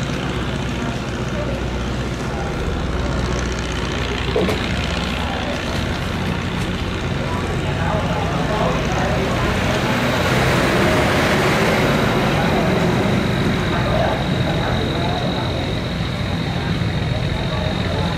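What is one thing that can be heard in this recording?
A boat engine drones steadily close by.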